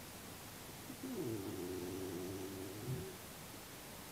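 A small animal cries out with a short, wavering whine.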